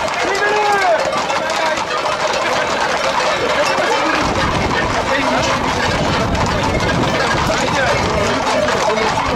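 Horses' hooves clatter on a paved road.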